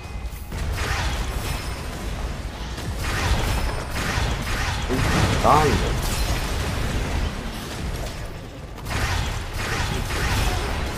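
Fiery blasts roar and crackle in bursts.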